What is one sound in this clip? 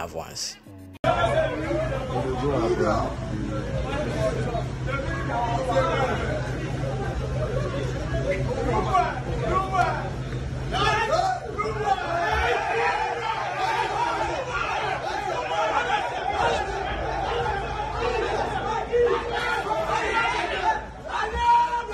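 A crowd of men talk and call out at once outdoors.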